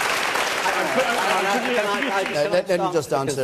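A man speaks into a microphone over the applause.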